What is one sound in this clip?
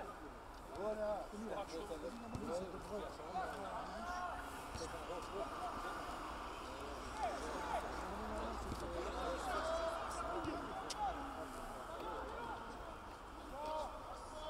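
Young men shout and call to each other outdoors.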